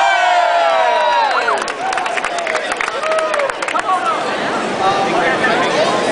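A crowd of men cheers and shouts loudly in a large echoing hall.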